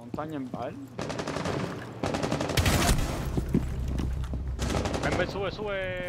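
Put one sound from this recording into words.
Gunfire crackles in rapid bursts nearby.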